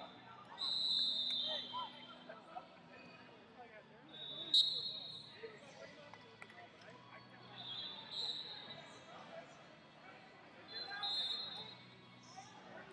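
Shoes squeak sharply on a mat.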